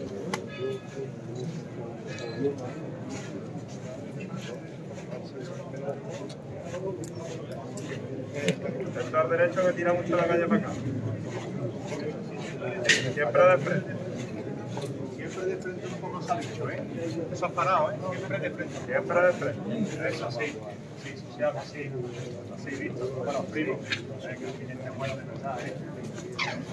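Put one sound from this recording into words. A crowd of men and women murmur and talk outdoors.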